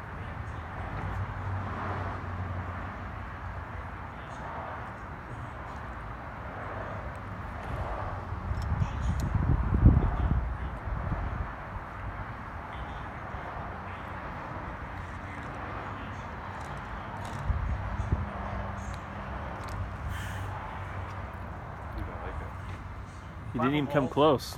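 Wind blows across an outdoor microphone.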